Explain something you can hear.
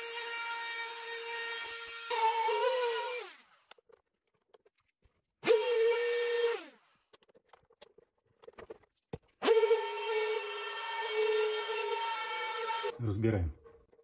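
An electric router whines loudly in short bursts, spinning up and winding down.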